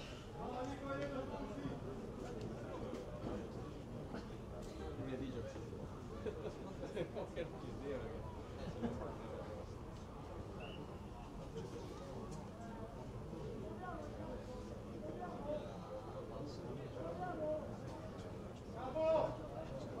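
A crowd of spectators murmurs and chats nearby.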